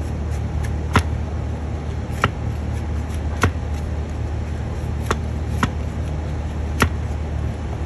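A horseshoe clanks sharply under repeated blows.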